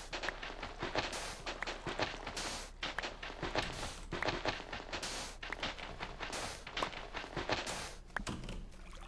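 Gravelly earth crunches in quick, repeated scrapes as it is dug.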